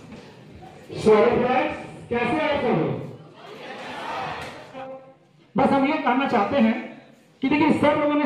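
A young man speaks with animation into a microphone, heard through loudspeakers in an echoing hall.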